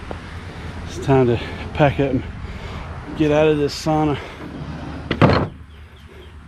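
A middle-aged man talks calmly up close, outdoors.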